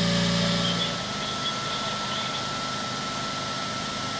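A truck engine idles nearby.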